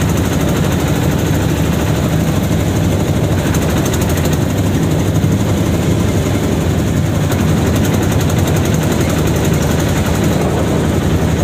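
A vehicle engine rumbles steadily as it drives along.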